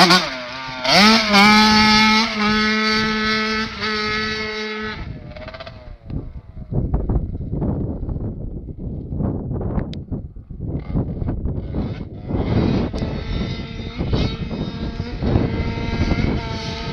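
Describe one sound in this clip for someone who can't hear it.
A dirt bike engine drones steadily as it rides away into the distance.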